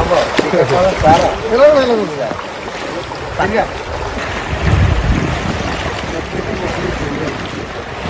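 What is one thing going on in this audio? Floodwater rushes and churns outdoors.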